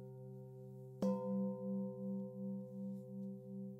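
A singing bowl is struck again and rings with a wavering hum.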